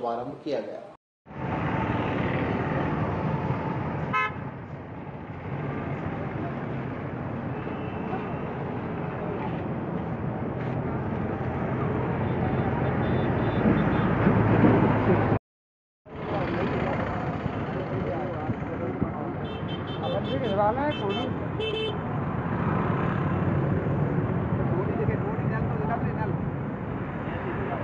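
A crowd of men chatter nearby.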